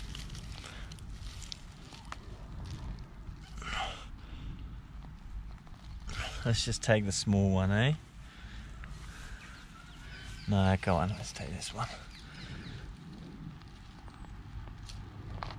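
Hands rustle through dry grass.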